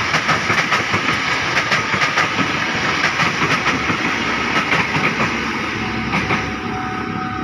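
A train rumbles past close by, wheels clattering rhythmically on the rails.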